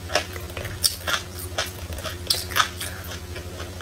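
Chopsticks scrape and clink against a plastic jar.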